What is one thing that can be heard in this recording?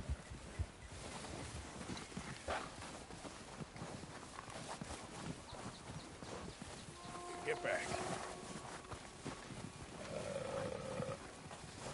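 Footsteps crunch through deep snow.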